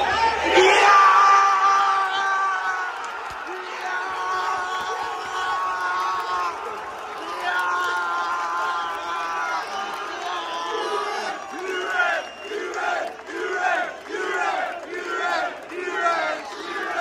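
A crowd of men sings a chant together close by.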